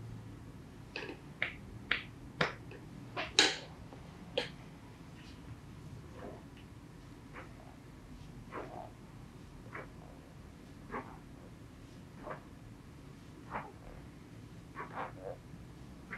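Hands pat and slap a person's body in a steady rhythm.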